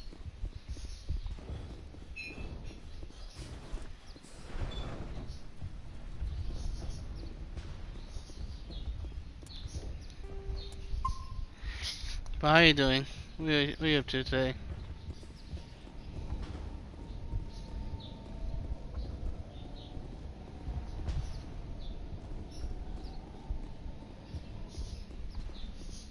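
Footsteps run over a hard floor.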